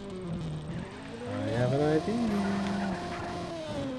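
Tyres screech as a racing car skids.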